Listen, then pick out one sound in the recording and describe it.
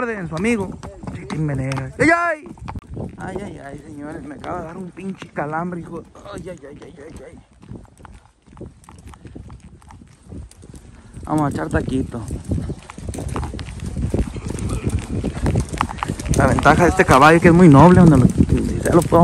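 A horse's hooves plod on dry dirt.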